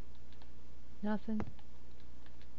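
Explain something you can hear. A young woman speaks briefly through a headset microphone.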